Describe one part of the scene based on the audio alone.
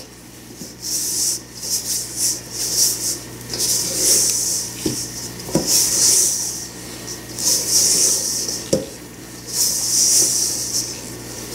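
A spatula scrapes through crumbly dough in a metal bowl in short bursts.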